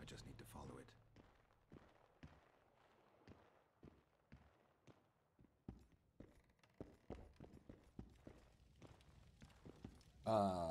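Footsteps knock on a wooden floor.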